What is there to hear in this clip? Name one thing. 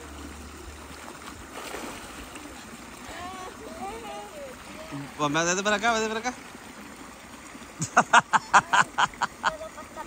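A stream trickles over rocks.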